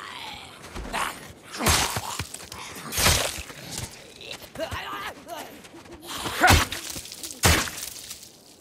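Heavy blows land with loud, sharp thuds.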